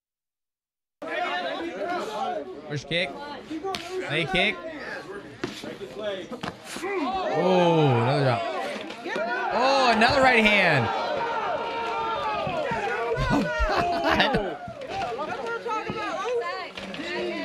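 A crowd shouts and cheers outdoors.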